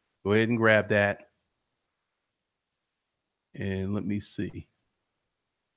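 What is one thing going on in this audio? A man speaks calmly and close into a microphone, in short bursts.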